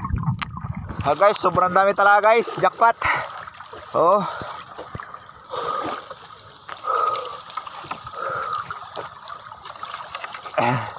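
Water splashes and drips from a net hauled out of the sea.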